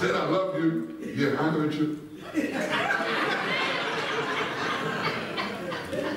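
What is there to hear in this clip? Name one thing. A man speaks steadily to an audience in a large echoing hall.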